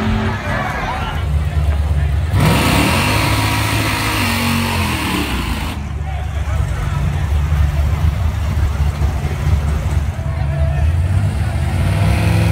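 A car engine revs loudly with rumbling bursts.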